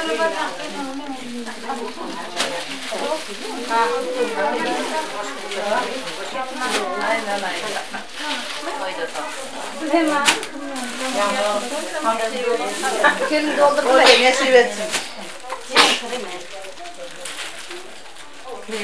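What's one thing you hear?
Fabric rustles as a woman unfolds and handles cloth.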